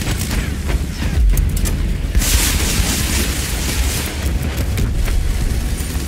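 An airship burns and explodes with heavy blasts.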